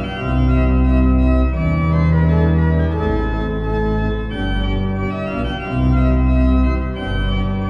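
Cheerful video game music plays with steady held notes.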